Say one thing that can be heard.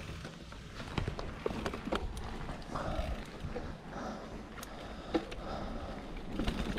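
A bicycle rattles over bumps.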